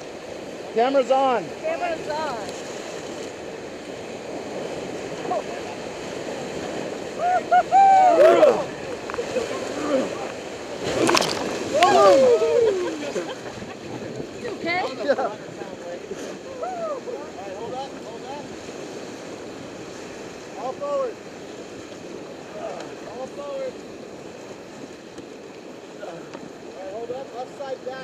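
White water rushes and churns loudly around a raft.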